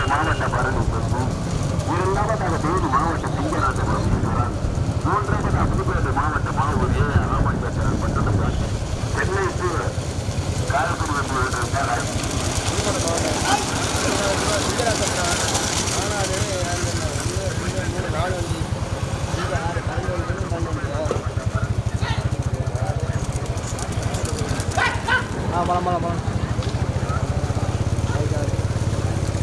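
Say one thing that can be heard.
Bullock carts race along a paved road with hooves clattering.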